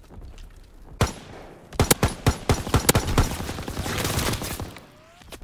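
A rifle fires a rapid series of loud shots.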